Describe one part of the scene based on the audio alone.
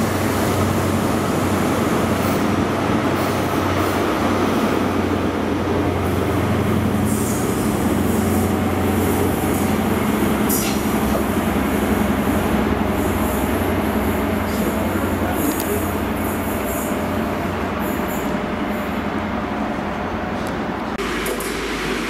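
A diesel train engine rumbles and drones steadily as the train pulls away.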